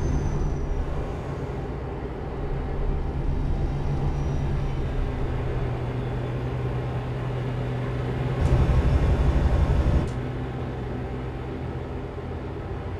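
A diesel truck engine drones while cruising on a motorway.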